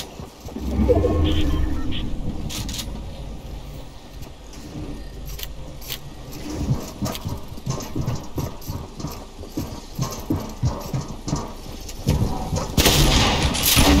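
A pickaxe swings with a whoosh and strikes with a thunk.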